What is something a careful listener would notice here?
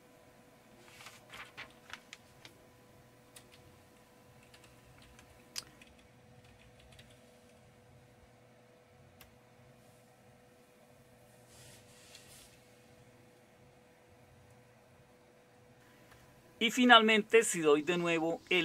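Computer keys click softly.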